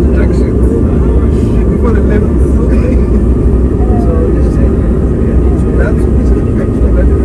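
A jet engine roars steadily inside an aircraft cabin.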